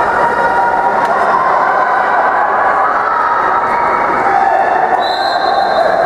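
Players splash and thrash in the water of an echoing indoor pool.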